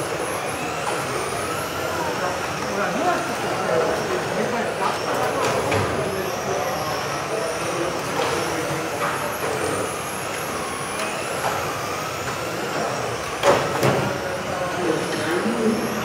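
Small electric model cars whine at high speed in a large echoing hall.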